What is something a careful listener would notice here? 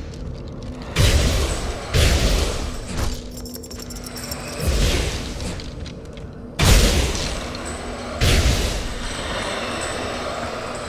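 Magic blasts whoosh and boom in loud bursts.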